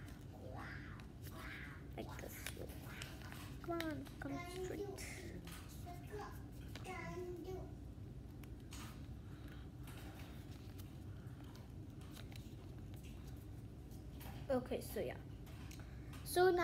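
A young girl speaks softly, close by.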